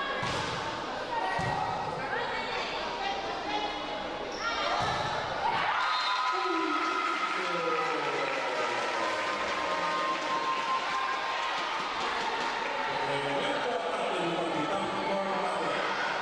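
Young women players call out to each other.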